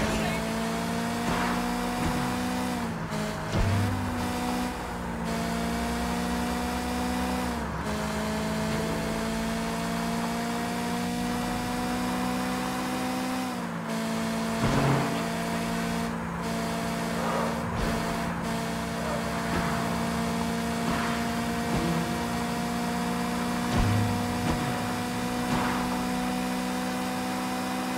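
A car engine roars steadily, its pitch dipping with each gear shift.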